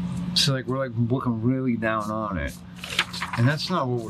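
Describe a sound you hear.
A sheet of paper rustles as it is turned.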